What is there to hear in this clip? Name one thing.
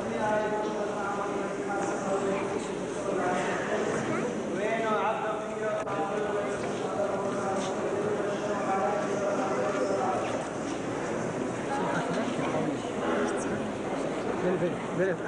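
A crowd murmurs and shuffles close by.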